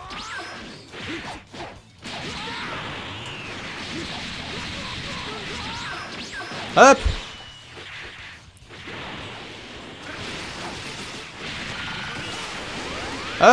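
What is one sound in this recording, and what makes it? Energy blasts whoosh and roar.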